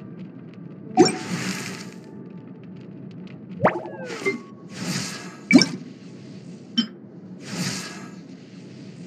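Game menu sounds chime and whoosh as options change.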